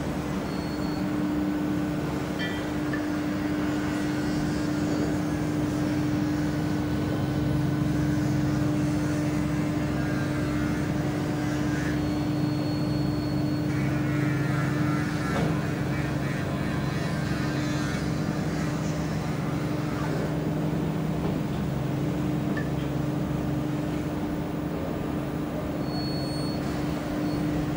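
Water churns and splashes behind a tugboat.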